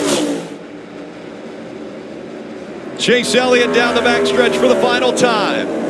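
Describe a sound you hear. Tyres squeal as a race car slides on the track.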